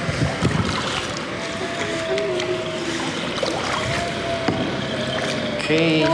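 A paddle splashes in water.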